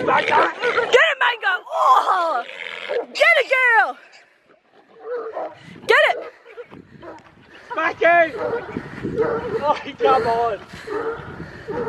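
Dogs bark and yelp excitedly.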